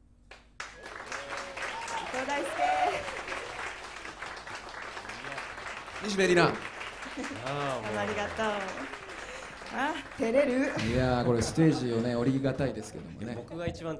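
A woman speaks and laughs through a microphone.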